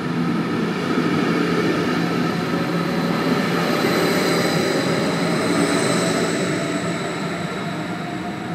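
An electric train's motors whine and glide in pitch, then fade.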